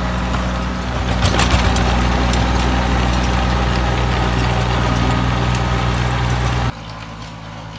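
A rotary tiller churns soil with a rattling whir.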